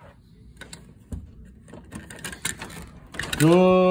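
A doorknob rattles and turns.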